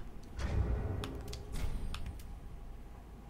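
Short menu clicks tick.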